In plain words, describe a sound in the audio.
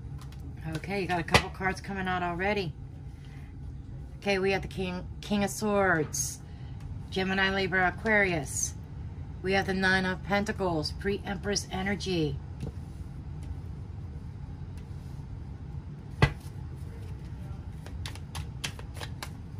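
Cards are laid down on a table with soft taps.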